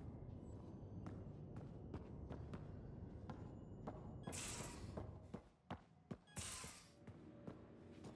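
Footsteps clank on a metal floor.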